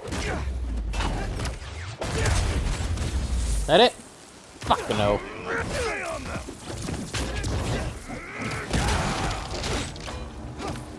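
Heavy punches and kicks land with sharp thuds.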